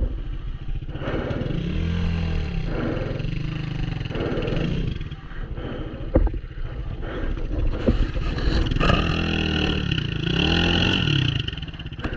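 A motorbike engine revs up and down loudly close by while riding.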